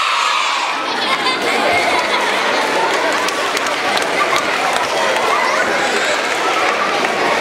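Many young children chatter and call out excitedly.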